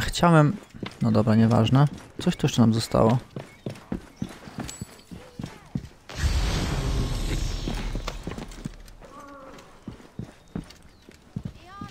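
Footsteps run quickly over hard ground and wooden planks.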